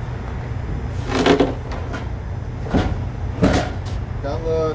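Metal clanks and rattles as a man handles a fan's housing.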